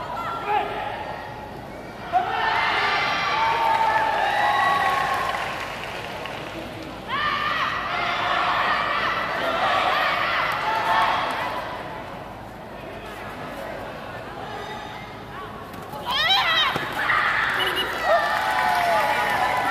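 Young fighters shout sharply in a large echoing hall.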